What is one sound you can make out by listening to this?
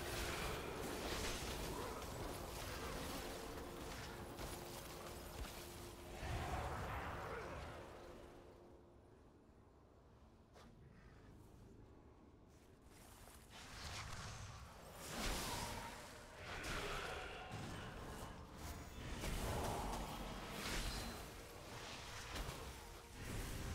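Magic spells crackle and boom in a game battle.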